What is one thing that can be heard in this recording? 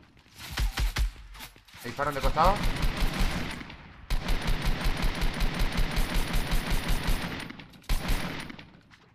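Rapid gunfire bursts from an automatic rifle.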